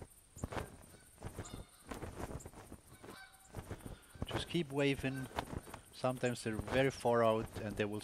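A cloth flag flaps sharply as it is waved through the air.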